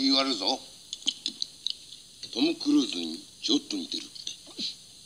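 A young man speaks, heard through a small television speaker.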